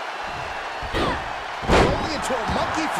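A body slams heavily onto a wrestling ring mat.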